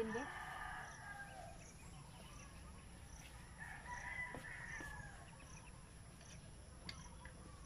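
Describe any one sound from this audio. A hand tool scrapes and taps against stone.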